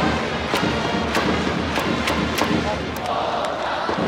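Drums beat in a steady rhythm among the crowd.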